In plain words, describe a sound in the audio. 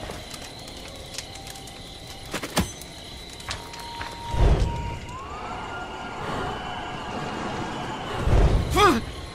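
Footsteps crunch through leaves on a forest floor.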